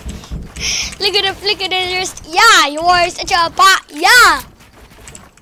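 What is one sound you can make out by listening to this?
A boy shouts excitedly close to a headset microphone.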